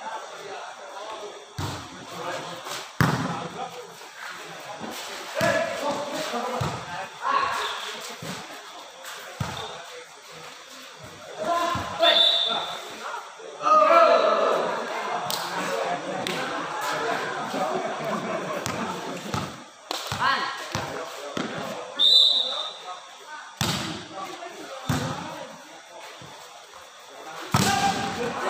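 Young men shout and call out across an echoing court.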